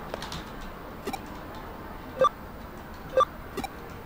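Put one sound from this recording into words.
Short electronic menu chimes ping several times.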